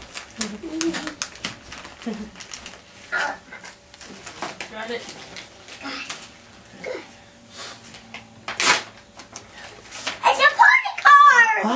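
Wrapping paper rustles and tears.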